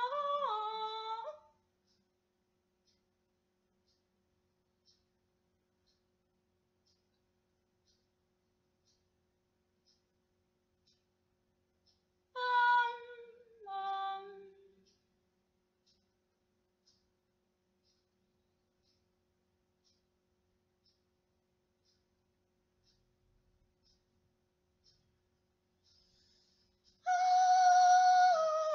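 A young woman sings long held notes close by, with pauses of silence between them.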